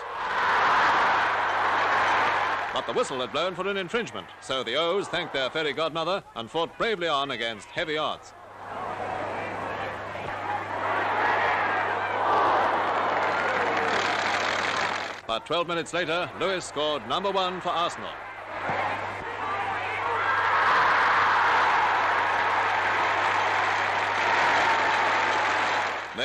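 A large crowd roars and cheers loudly outdoors.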